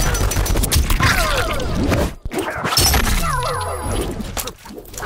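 A woman grunts and cries out in pain.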